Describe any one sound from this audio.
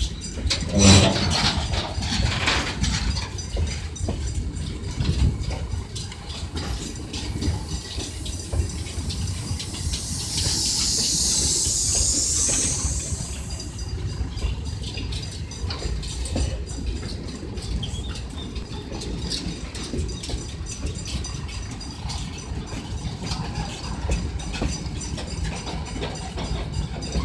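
Freight train cars roll past close by with a steady rumble.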